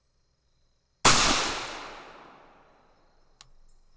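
A rifle fires a single loud shot outdoors, and the crack echoes away.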